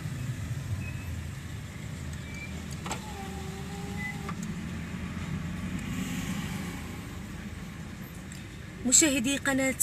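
A car engine hums low and steady, heard from inside the car.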